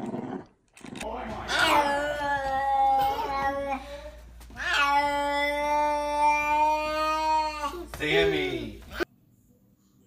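A toddler babbles close by.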